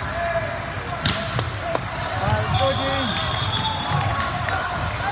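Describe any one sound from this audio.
A volleyball is hit with a sharp smack.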